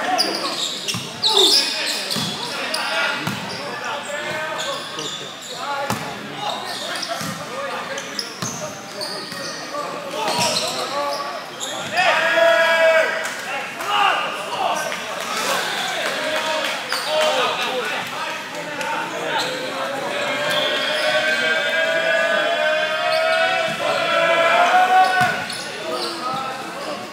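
A crowd of young men chatters and shouts in a large echoing hall.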